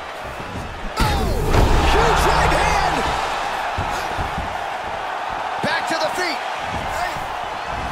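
A crowd roars and cheers.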